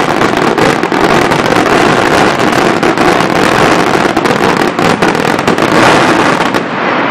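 Fireworks boom loudly overhead.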